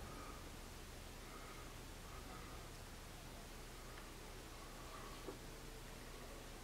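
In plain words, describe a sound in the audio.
A makeup stick rubs softly against skin.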